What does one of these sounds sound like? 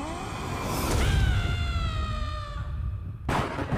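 A boy screams in a high, wavering voice.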